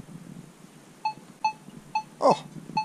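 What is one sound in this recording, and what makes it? A metal detector gives short, sharp beeps.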